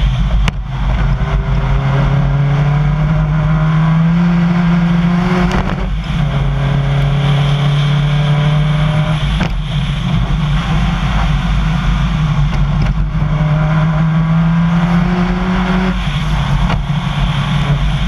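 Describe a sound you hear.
A rally car engine revs hard, climbing through the gears.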